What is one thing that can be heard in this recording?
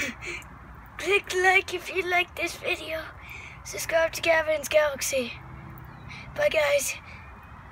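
A young boy talks excitedly, close by.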